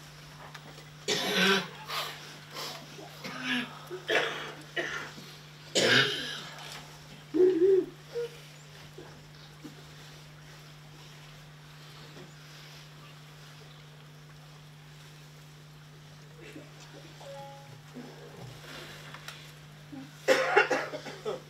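A woman murmurs a prayer softly.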